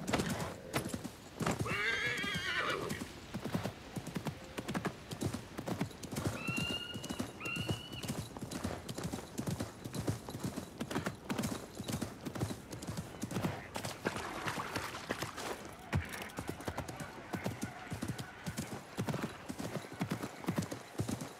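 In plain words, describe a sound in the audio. Horse hooves thud steadily on sand and dirt at a gallop.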